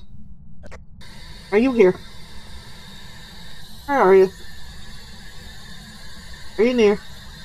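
A handheld radio hisses with static.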